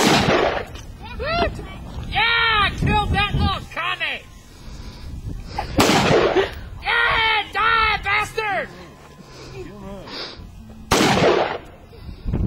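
A rifle fires loud single shots outdoors, each followed by a rolling echo.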